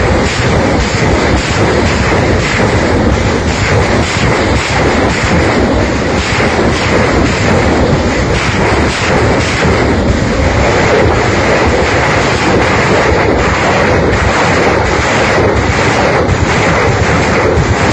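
Rapid blasts crackle in quick succession.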